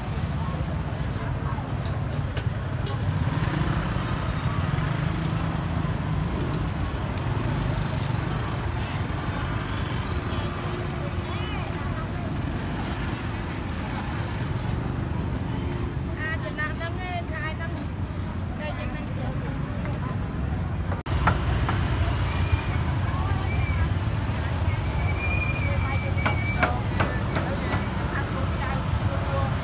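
A crowd of people chatter all around, outdoors in a busy street.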